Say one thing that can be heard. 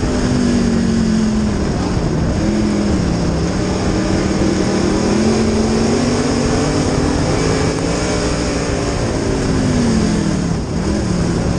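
A race car engine roars loudly up close, its pitch rising and falling with the throttle.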